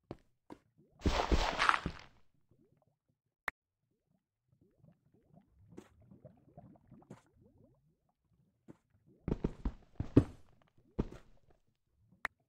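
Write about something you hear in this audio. Digging crunches through loose earth in short bursts.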